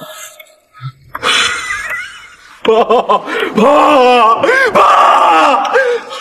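A middle-aged man shouts in distress.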